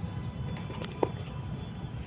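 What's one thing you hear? A plastic part clicks once.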